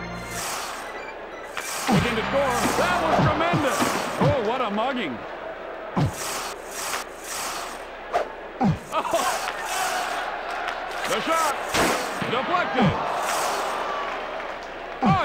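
Skates scrape rhythmically across ice.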